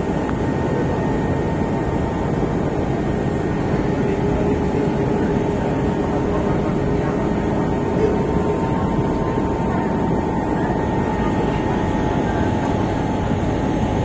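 Wind blows across the deck outdoors.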